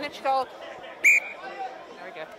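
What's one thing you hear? A referee's whistle blows once, short and sharp.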